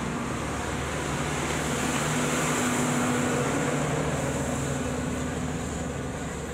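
A truck engine rumbles as it passes close by.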